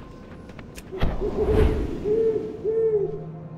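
Large wings flap and whoosh loudly.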